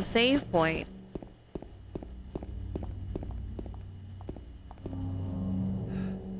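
Footsteps tap quickly on a hard path.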